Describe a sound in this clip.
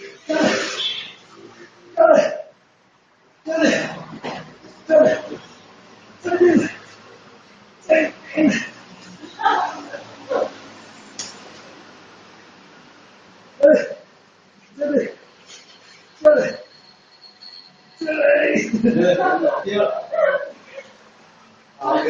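A young woman cries out in short, sharp bursts in an echoing room.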